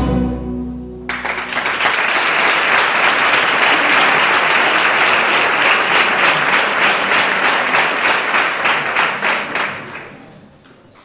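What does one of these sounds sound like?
A large crowd applauds loudly in an echoing hall.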